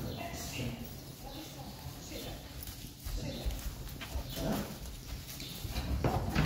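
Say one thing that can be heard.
Hooves shuffle and rustle in straw.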